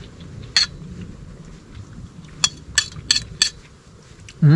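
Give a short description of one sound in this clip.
A man slurps hot soup from a spoon.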